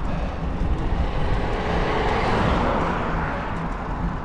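A second car rushes past close by.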